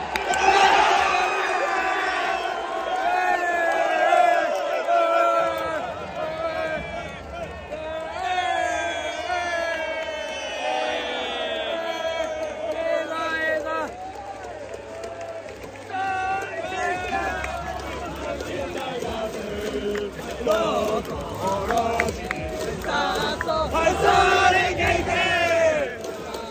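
A young man shouts and sings excitedly close by.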